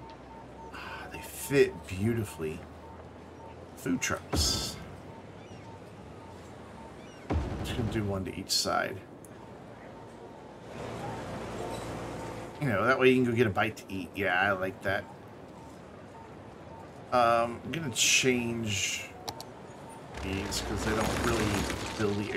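A man talks casually into a close microphone.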